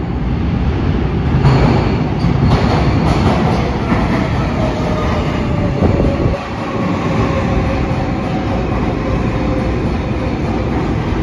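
A subway train rolls into an echoing underground station.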